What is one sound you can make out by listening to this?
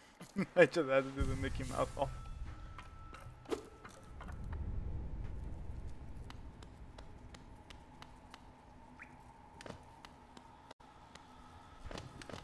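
Light footsteps tap quickly on stone.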